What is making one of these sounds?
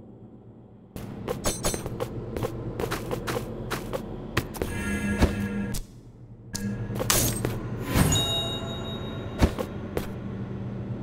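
A sword slashes and clangs in quick strikes.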